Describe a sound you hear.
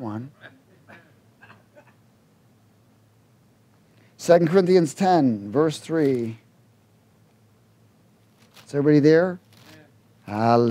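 A middle-aged man reads out calmly into a microphone in a room with a slight echo.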